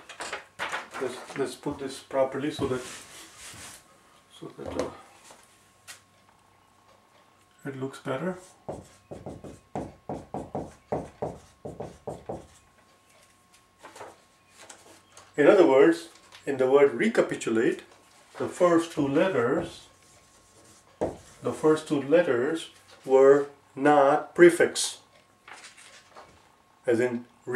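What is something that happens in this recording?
A man speaks calmly and clearly, close by, as if teaching.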